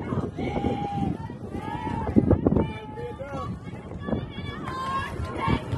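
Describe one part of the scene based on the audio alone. Young women call out and cheer across an open field.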